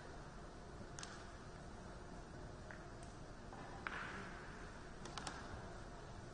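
Pool balls click sharply against each other in a later shot.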